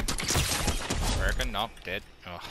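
Gunshots crack in quick succession.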